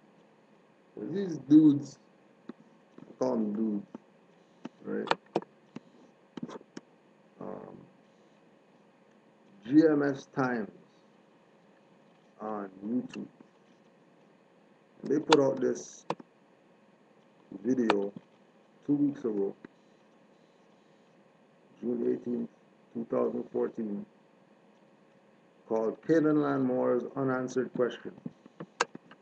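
A man speaks calmly and close to a microphone, in short phrases with pauses.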